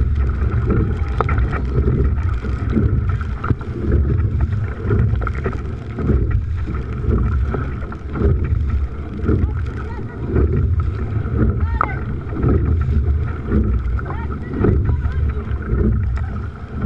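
Oars splash and dip rhythmically into water.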